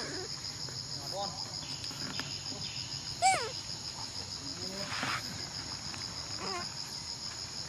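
A baby monkey squeaks softly, close by.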